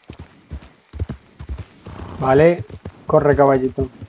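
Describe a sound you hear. Horse hooves thud on soft ground at a walk.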